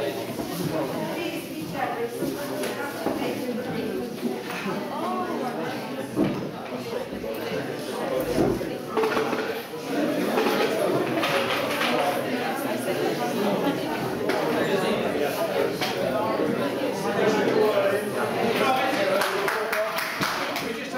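Several men and women chatter and talk over one another nearby.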